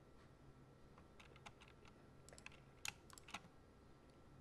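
Keys click on a keyboard in short bursts.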